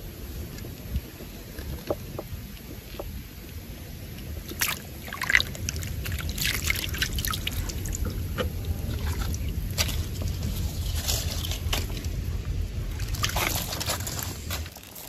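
Water splashes softly as hands scoop and stir it.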